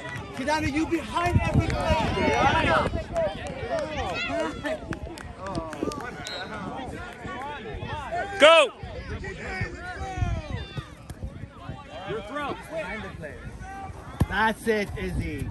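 A soccer ball is kicked with a dull thump.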